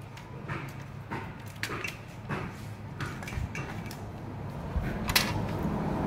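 Metal and plastic parts click and rattle as they are handled.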